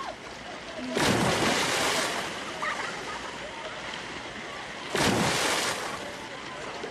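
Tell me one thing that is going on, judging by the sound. Bodies splash heavily into water.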